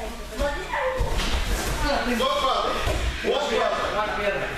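A body thuds onto a gym mat.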